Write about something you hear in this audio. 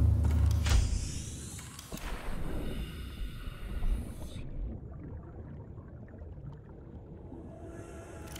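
A deep underwater rumble hums steadily.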